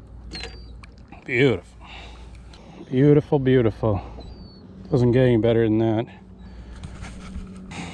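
Water laps gently against a boat.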